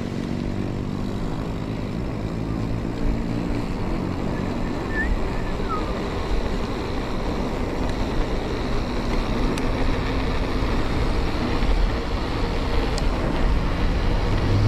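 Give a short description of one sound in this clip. Bicycle tyres roll and hum on a paved road.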